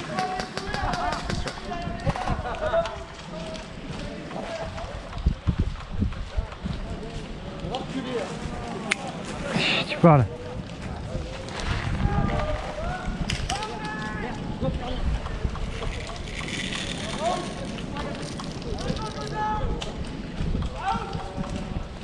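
Footsteps crunch and rustle through dry leaves.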